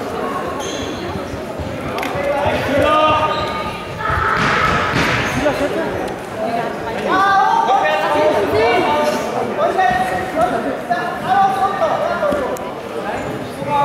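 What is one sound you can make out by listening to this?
Wrestlers' feet thud and shuffle on a mat.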